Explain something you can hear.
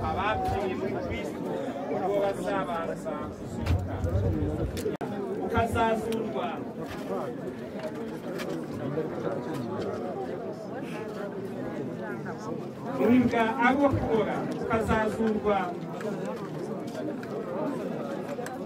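A crowd of men and women murmurs and talks quietly outdoors.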